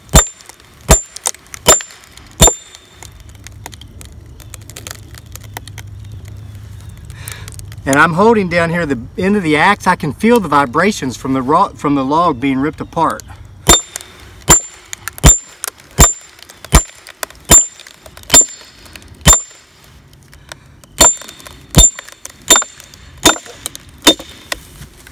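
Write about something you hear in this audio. A hammer strikes the back of a hatchet with sharp, ringing metallic blows.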